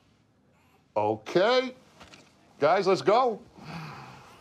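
A man speaks forcefully and close by.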